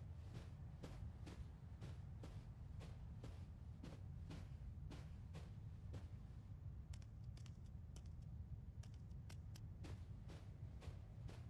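A child's footsteps patter steadily across a soft floor.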